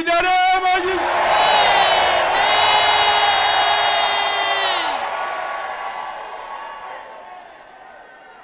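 A large crowd cries out together in a long, sustained shout that slowly fades.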